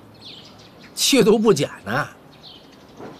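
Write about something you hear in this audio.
A middle-aged man answers in a slow, mocking voice nearby.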